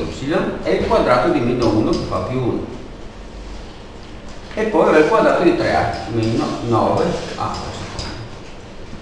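A man speaks calmly, explaining, close to a microphone.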